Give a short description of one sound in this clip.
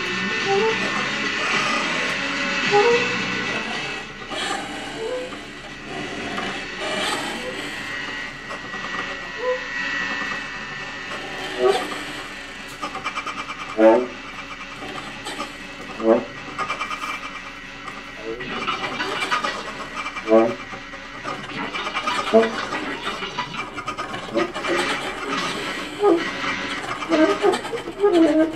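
A saxophone plays soft, breathy notes.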